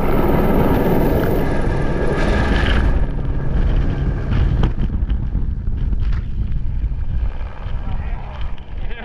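A helicopter roars close by, then fades as it flies away.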